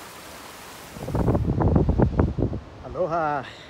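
Wind gusts buffet the microphone outdoors.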